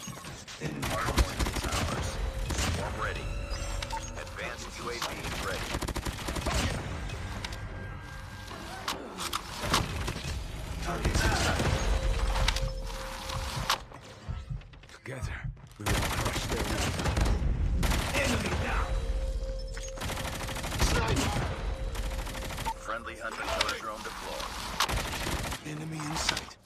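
A heavy gun fires in loud, rapid bursts.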